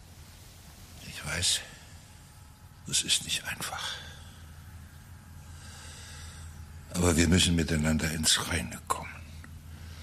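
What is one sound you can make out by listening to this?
An elderly man speaks slowly and weakly, close by.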